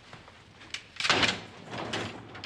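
A door latch clicks as a door is pulled open.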